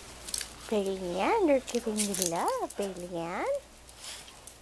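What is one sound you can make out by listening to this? A puppy whines and yelps in high, wavering cries.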